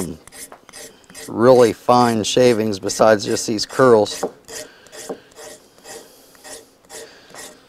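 A knife scrapes and shaves wood in short, repeated strokes.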